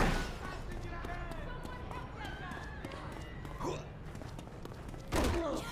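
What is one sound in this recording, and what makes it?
Quick footsteps run over pavement.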